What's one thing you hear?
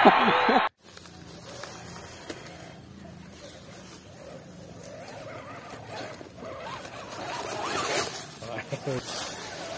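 Tyres crunch over dry leaves.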